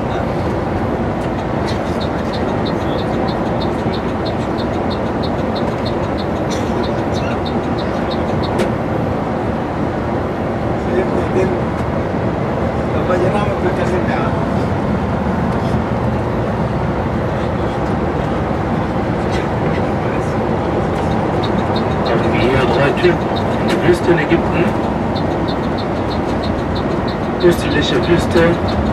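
A vehicle engine hums steadily from inside a moving vehicle.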